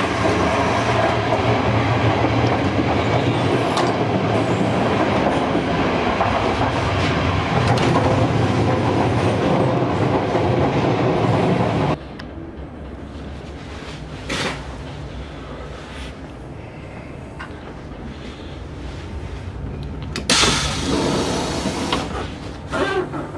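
A train rumbles steadily along the tracks, then grows quieter.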